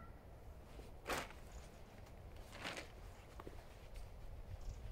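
A padded jacket rustles as it is handled.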